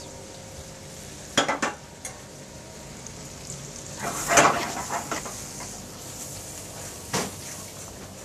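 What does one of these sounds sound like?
Pans clatter on a stove.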